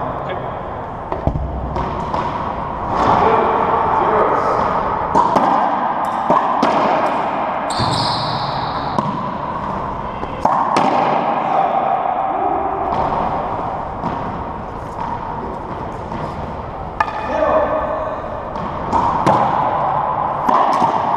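Racquetball racquets strike a ball that smacks off the walls of an echoing court.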